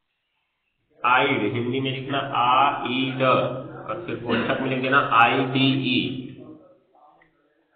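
A man speaks calmly and close by, explaining.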